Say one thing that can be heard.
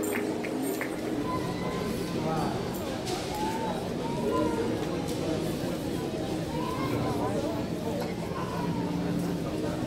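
A choir sings softly in the distance.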